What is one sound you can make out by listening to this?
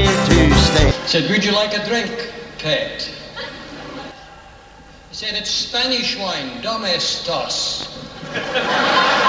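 A man talks animatedly through a microphone over a loudspeaker system.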